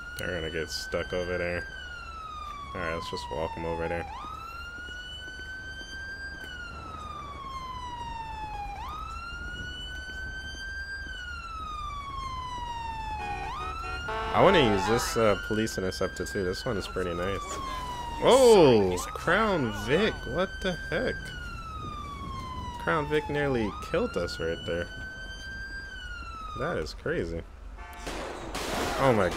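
A police siren wails up and down repeatedly.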